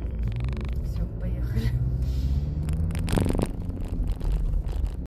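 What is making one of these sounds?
A car engine hums steadily inside a car.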